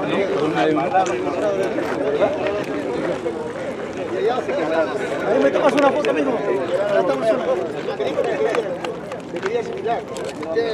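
Several men talk and laugh together nearby outdoors.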